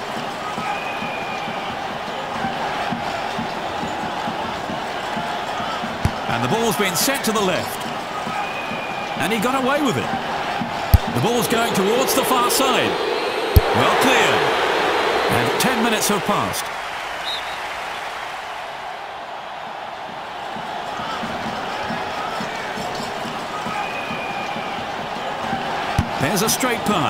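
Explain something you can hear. A stadium crowd roars steadily, swelling now and then.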